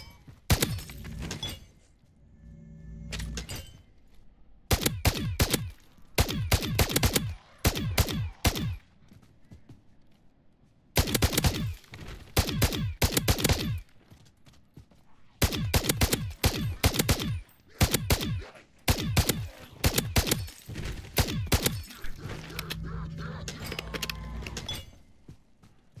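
A rifle's magazine is swapped with metallic clicks.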